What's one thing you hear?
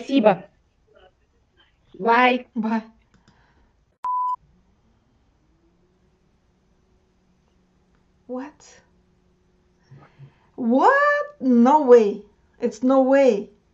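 A woman speaks warmly and with animation over an online call.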